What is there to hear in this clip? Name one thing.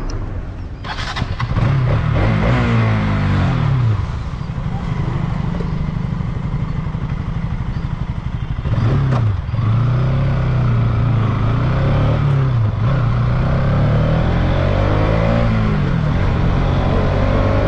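A motorcycle engine hums and rises and falls in pitch as it rides along.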